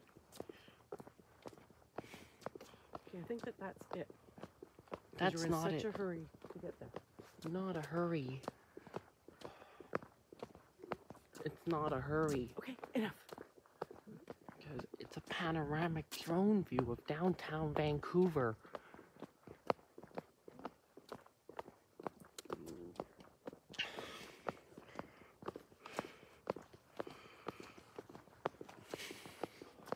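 Footsteps scuff across grass and pavement at a walking pace.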